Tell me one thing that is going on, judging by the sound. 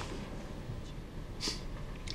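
Paper rustles as an envelope is picked up.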